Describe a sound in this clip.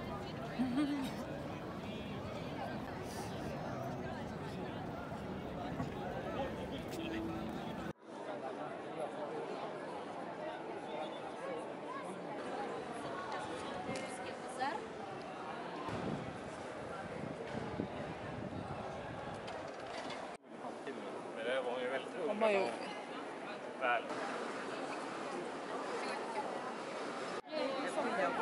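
A crowd chatters in a busy open square.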